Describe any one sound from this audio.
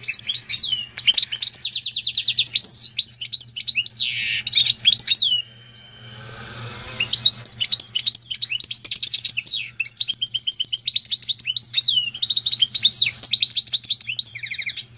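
A goldfinch-canary hybrid sings rapid twittering trills.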